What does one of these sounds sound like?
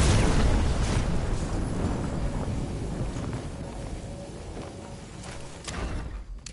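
Wind rushes loudly past a glider.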